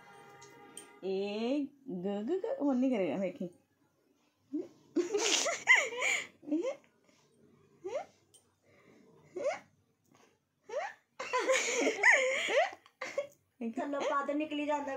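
A woman talks playfully and closely in a high, sing-song voice.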